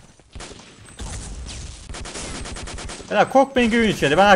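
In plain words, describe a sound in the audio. A submachine gun fires a rapid burst.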